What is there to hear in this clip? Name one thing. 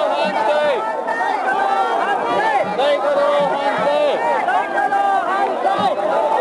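A large crowd of men and women shouts and chants loudly outdoors.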